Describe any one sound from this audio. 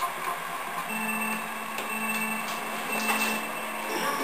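Countdown beeps ring out from a television, one after another.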